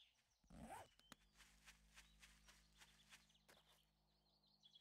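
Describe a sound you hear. Footsteps rustle through grass at a quick pace.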